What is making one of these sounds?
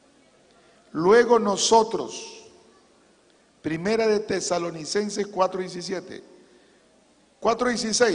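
A middle-aged man speaks earnestly into a microphone in short bursts with pauses.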